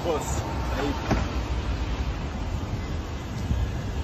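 A car door handle clicks and the door opens.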